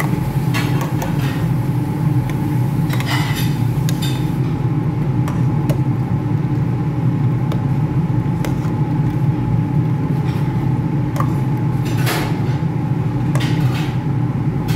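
A thick stew bubbles and simmers in a pot.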